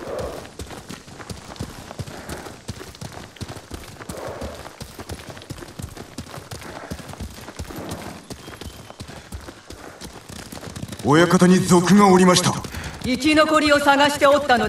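Horse hooves gallop steadily over a dirt path.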